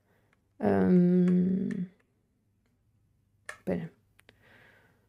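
A young woman speaks briefly and casually, close to a microphone.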